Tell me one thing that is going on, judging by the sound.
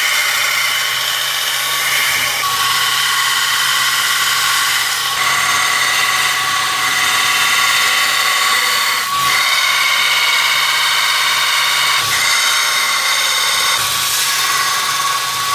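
A belt sander whines steadily.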